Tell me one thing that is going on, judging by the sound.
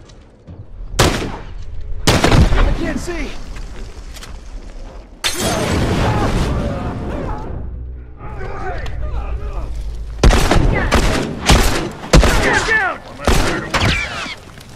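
Gunshots ring out sharply, one after another.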